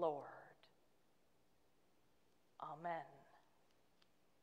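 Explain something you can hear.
A woman speaks calmly into a microphone, heard through an online call.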